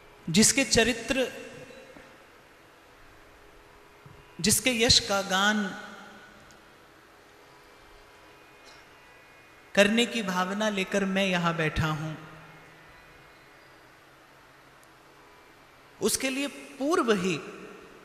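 A young man speaks calmly into a microphone, in short phrases with pauses.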